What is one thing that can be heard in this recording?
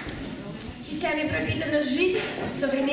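A young girl sings into a microphone in a large hall.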